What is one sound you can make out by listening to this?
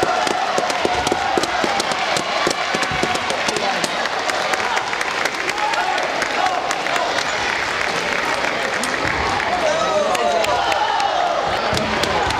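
Table tennis balls click rapidly against paddles and tables.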